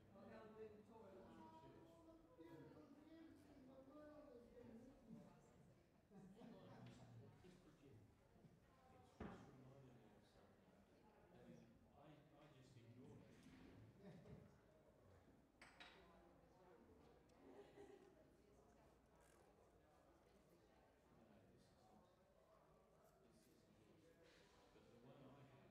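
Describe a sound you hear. An adult speaks calmly through a microphone in a large echoing hall.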